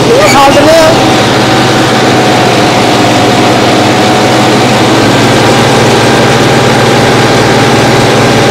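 A tiller churns and throws up soil with a rough grinding.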